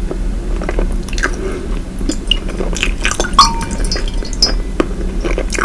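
A woman makes soft, wet smacking mouth sounds very close to a microphone.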